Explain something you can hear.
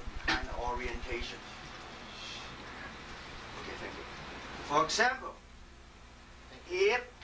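An elderly man speaks in short bursts, close by.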